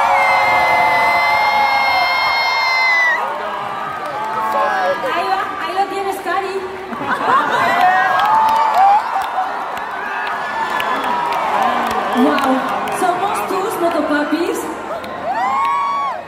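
A crowd cheers and sings along close by.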